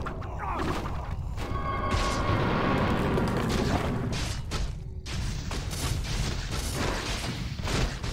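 Weapons clash in a fantasy battle.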